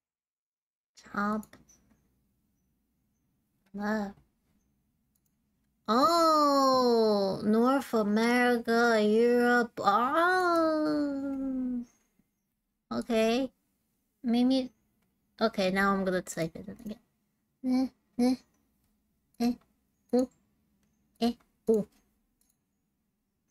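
A young woman speaks with animation, close to a microphone, in short bursts.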